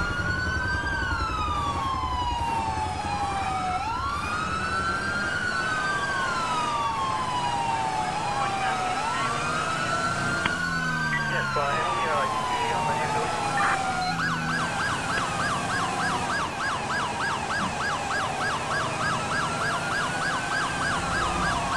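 A car engine hums as the car drives along.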